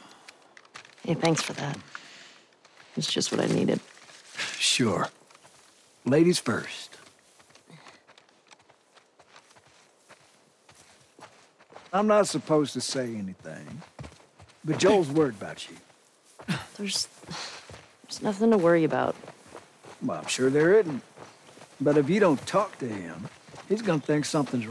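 A young woman speaks calmly and thoughtfully.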